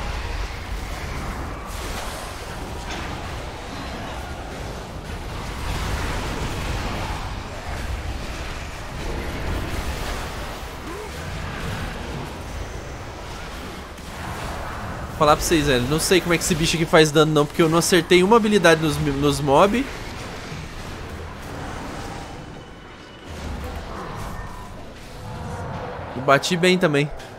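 Magic blasts and combat effects whoosh and crackle from a game.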